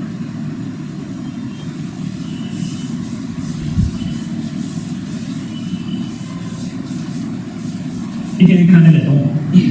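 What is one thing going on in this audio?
A duster rubs across a chalkboard.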